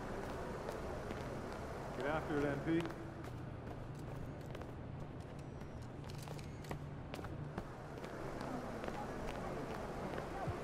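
Quick footsteps slap on a hard floor.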